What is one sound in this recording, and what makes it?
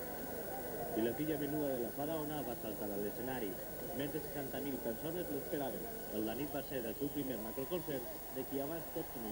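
A crowd of people talks and shouts close by.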